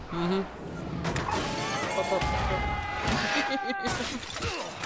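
Metal crashes and bursts apart with a loud, roaring explosion.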